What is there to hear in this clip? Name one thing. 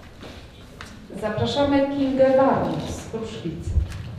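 A woman speaks into a microphone over a loudspeaker in an echoing hall.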